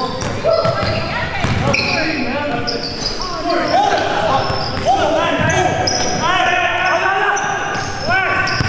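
Sneakers squeak sharply and often on a gym floor.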